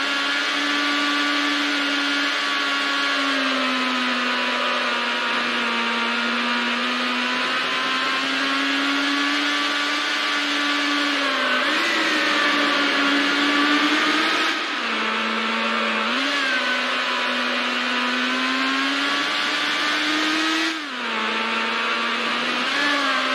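A racing car engine roars at high speed, its pitch dipping briefly at each gear change.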